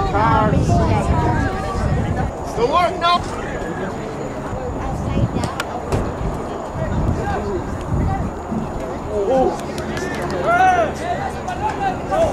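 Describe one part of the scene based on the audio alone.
Young men shout to each other across an outdoor field.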